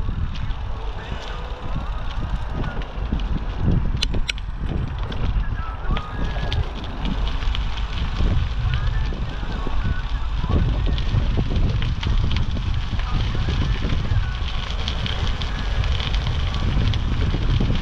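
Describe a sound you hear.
Bicycle tyres crunch and rumble on a gravel path.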